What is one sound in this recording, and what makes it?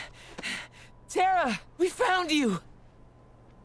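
A young man calls out with joy and relief.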